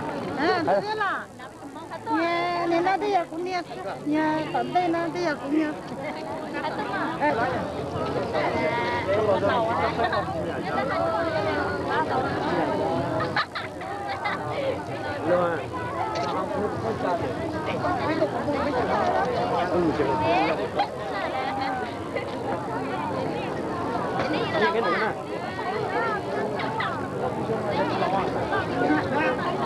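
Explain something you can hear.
A crowd of girls and women chatter and talk close by.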